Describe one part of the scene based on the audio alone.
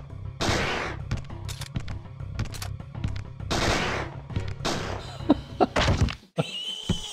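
Gunshots fire rapidly, one after another.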